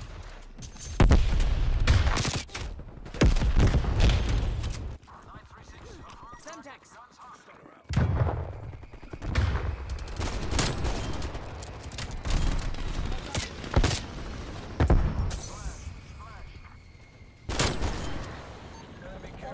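Pistol shots ring out in quick, loud bursts.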